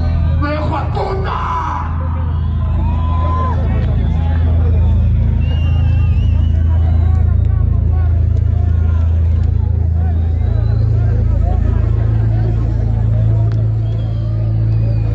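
Loud live music plays through large loudspeakers, with a heavy booming beat.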